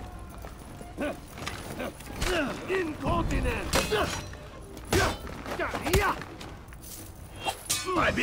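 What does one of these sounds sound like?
Steel weapons clash and clang in a fight.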